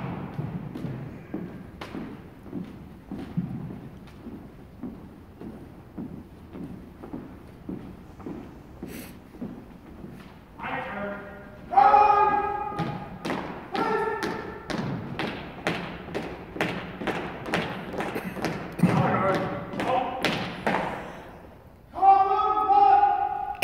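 Boots stamp in a steady marching rhythm on a hard floor in an echoing hall.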